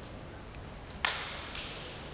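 A wrestler claps his hands once, sharply.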